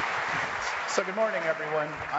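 A middle-aged man speaks through a microphone to the audience.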